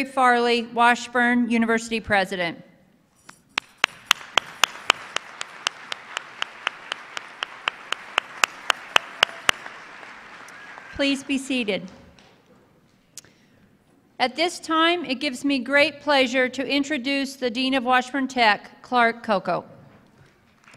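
A woman speaks calmly into a microphone, heard over loudspeakers in a large echoing hall.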